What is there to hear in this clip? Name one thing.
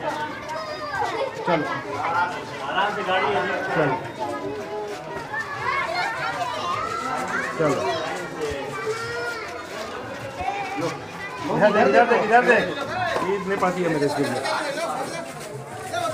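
Young children talk and chatter close by, outdoors.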